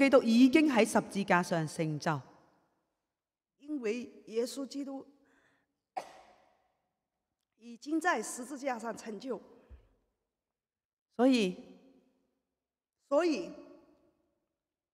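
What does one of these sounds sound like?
A young woman speaks through a microphone in short phrases with pauses between them.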